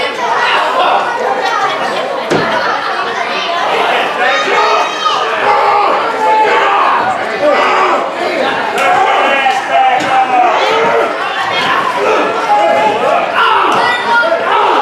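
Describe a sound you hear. A crowd of men and women talk and shout in a large echoing hall.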